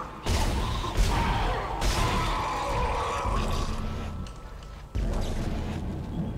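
A gun fires in loud, sharp bursts.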